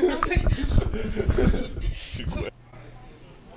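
Teenagers laugh and chatter close to a microphone.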